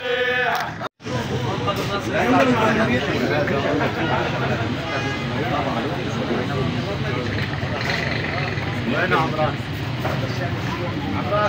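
People talk in a murmuring crowd nearby.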